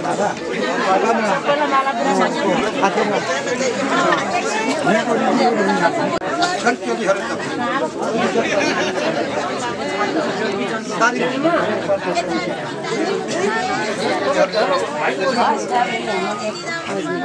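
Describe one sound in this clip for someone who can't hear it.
A crowd of men and women chatter loudly all around, outdoors.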